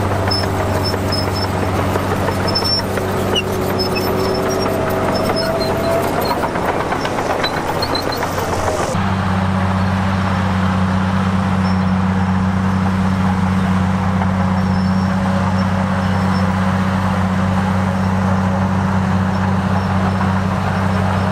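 A bulldozer engine rumbles steadily.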